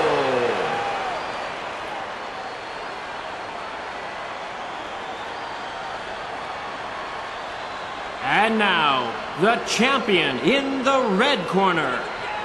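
A crowd cheers steadily in a large hall.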